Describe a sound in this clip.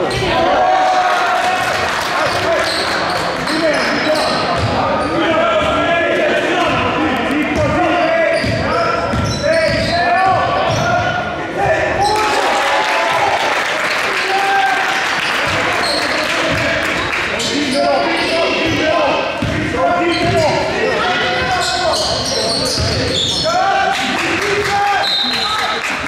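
Young players and spectators shout and call out throughout.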